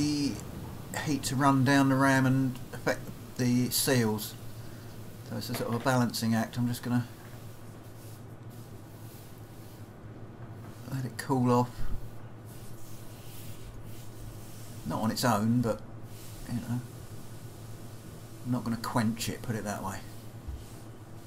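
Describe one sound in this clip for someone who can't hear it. A man speaks calmly close by, in short bursts with pauses.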